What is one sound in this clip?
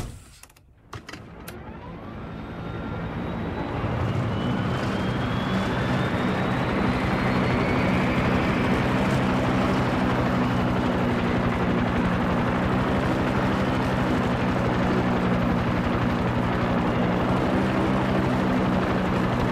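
A helicopter engine starts up, its rotor whining and then thudding steadily and loudly.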